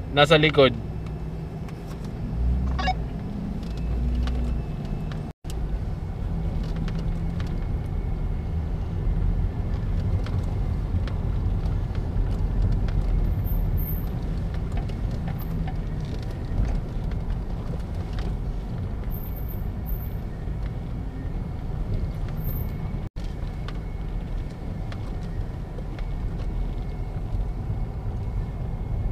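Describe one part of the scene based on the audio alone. Off-road vehicle engines rumble as they drive along a dirt track.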